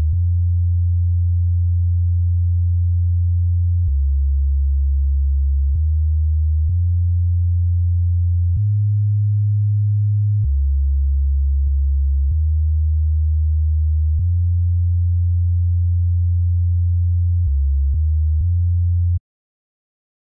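A deep synth bass line plays a slow melody of sustained low notes.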